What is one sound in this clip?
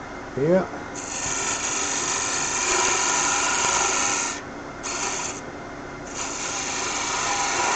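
A pencil scratches with a hiss against spinning wood, in several bursts.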